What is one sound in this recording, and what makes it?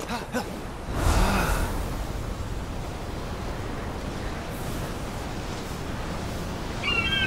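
Wings whoosh loudly as a figure glides through the air.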